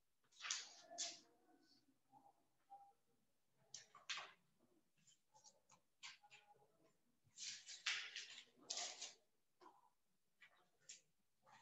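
Paper pages rustle as they are flipped.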